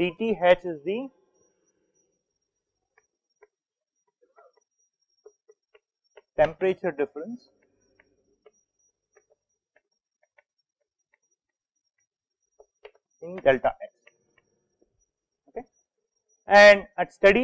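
A man speaks calmly into a microphone in short bursts.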